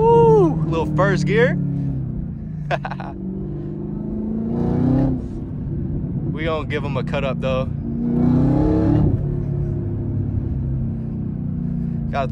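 A powerful car engine rumbles and revs up as the car accelerates.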